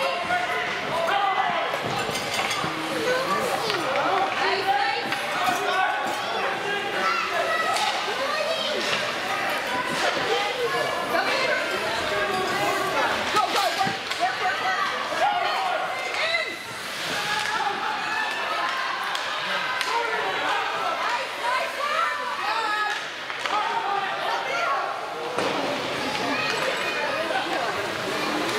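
Young players shout to each other in an echoing rink.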